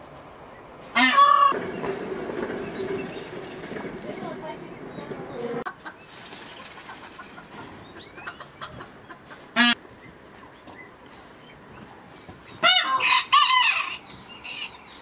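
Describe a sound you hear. A peacock calls out loudly with sharp, honking cries.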